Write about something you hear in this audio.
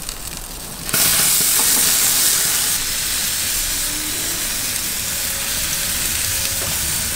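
Meat sizzles loudly on a grill.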